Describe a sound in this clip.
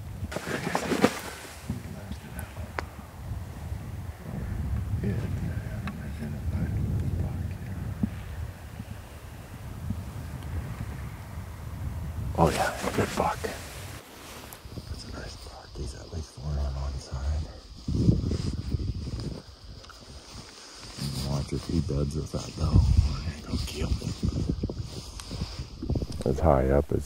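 Wind buffets outdoors in low gusts.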